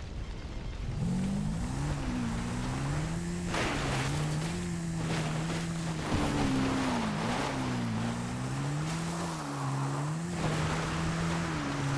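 A small engine hums and revs as it drives along.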